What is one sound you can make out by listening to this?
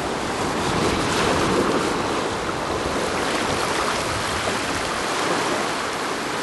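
Shallow water splashes and washes over rocks close by.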